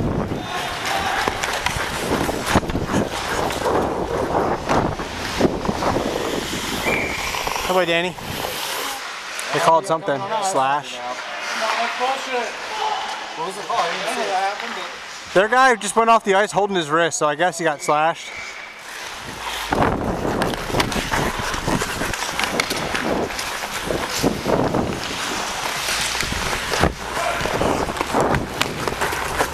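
Skate blades scrape and carve across ice.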